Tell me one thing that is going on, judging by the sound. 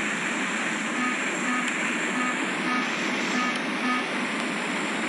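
An alarm beeps in a quick, repeated pattern.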